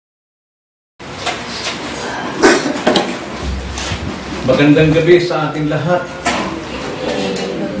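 An elderly man speaks calmly through a microphone in a room that echoes slightly.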